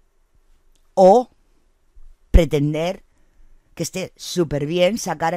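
A middle-aged woman speaks with animation, close to a microphone.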